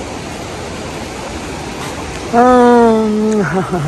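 A river rushes over rocks nearby.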